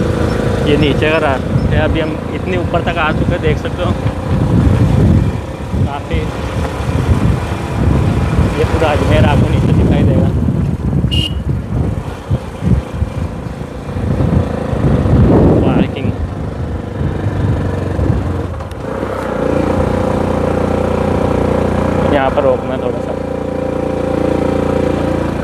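Wind blows hard outdoors, rumbling and buffeting in gusts.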